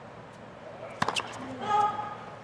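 A tennis racket strikes a ball sharply.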